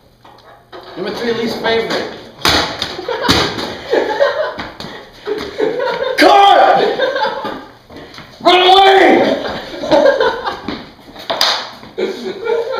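Young men laugh and talk loudly, close by.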